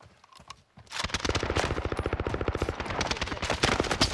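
An automatic rifle fires in a fast, steady stream of shots.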